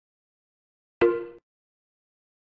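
A video game menu gives a short electronic beep.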